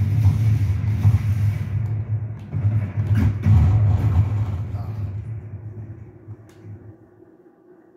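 Explosions rumble and boom from a video game through a television speaker.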